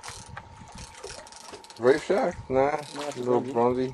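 Water splashes as a fish thrashes at the surface.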